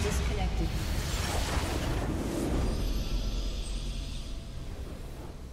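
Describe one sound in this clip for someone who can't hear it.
A booming victory sound effect bursts out and slowly fades.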